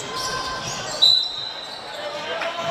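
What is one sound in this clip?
A referee's whistle blows once, sharp and short.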